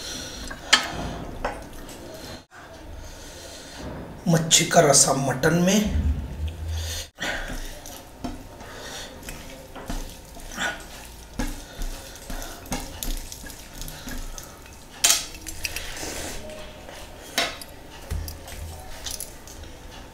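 Food squelches and smacks as a man eats with his hands.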